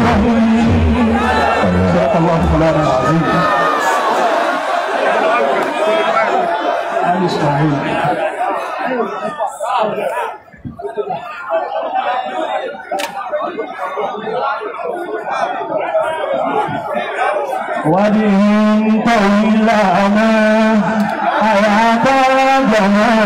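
A large crowd cheers and chants loudly.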